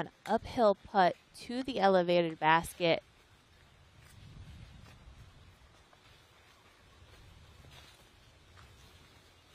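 Footsteps rustle through dry leaves on the ground.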